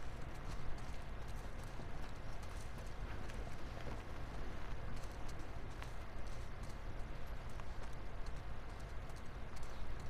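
Footsteps run quickly over grass and a hard floor.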